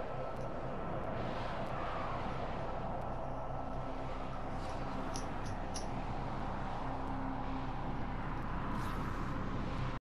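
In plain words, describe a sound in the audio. Spaceship engines hum with a deep, steady drone.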